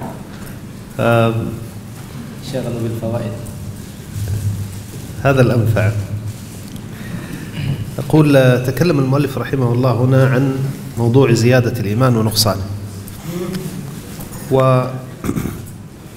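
A man speaks calmly into a microphone, reading out with pauses.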